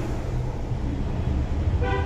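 A spoon stirs in a steel pot of boiling water.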